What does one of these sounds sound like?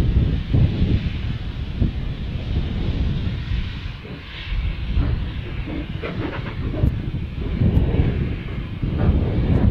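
A steam engine hisses as it lets off steam.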